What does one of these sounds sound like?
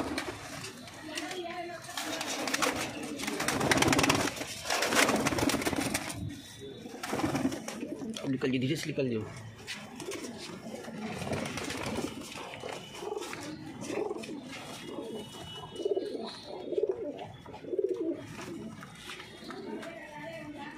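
Many pigeons coo in low, throaty pulses.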